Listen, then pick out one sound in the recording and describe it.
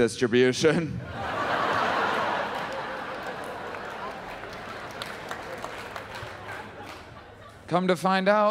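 An audience laughs and claps.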